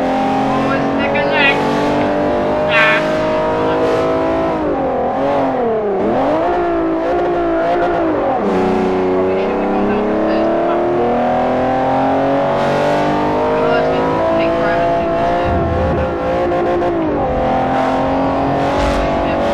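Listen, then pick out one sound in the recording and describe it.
A racing car engine roars steadily, its pitch rising and falling as it speeds up and shifts gears.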